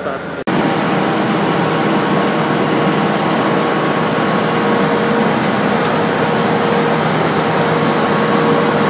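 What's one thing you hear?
Machinery hums and rattles steadily nearby.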